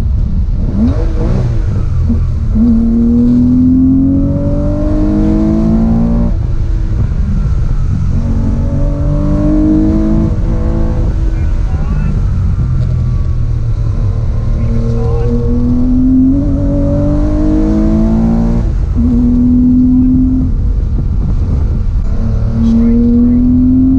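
A car engine revs up and down loudly as the driver shifts through the gears.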